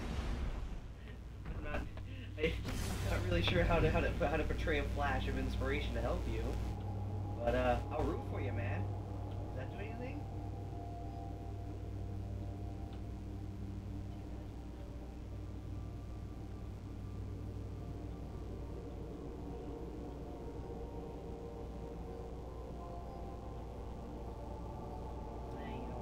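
A spacecraft engine hums low and steady.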